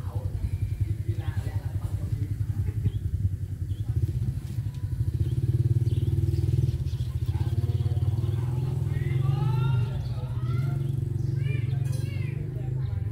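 An animal purrs loudly and steadily close by.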